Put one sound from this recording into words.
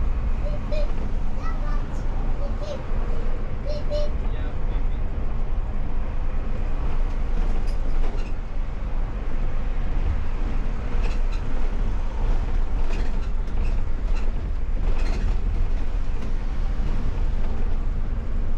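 Tyres roll on the road.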